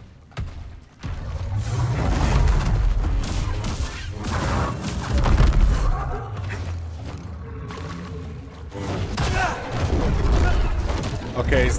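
A large beast growls and roars.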